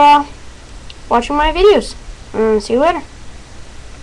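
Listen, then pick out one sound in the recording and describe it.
A boy speaks close to the microphone with animated, sing-song inflections.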